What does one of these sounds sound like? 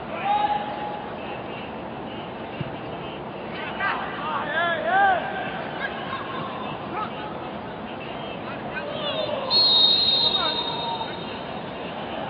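Men shout across a large, echoing empty stadium.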